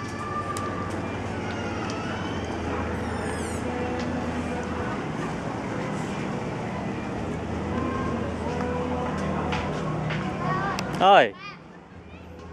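People chatter faintly in the distance.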